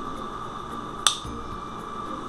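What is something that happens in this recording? A crimping tool squeezes shut with a sharp click.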